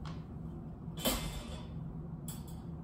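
A wire crate door clanks as it swings open.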